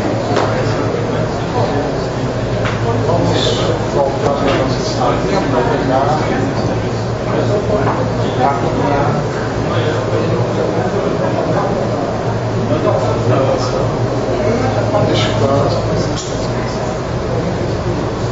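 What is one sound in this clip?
A middle-aged woman talks nearby.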